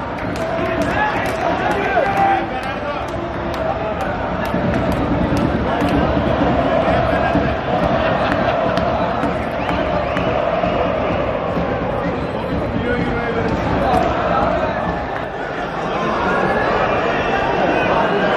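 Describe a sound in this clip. A crowd of fans chants and cheers throughout a large open stadium.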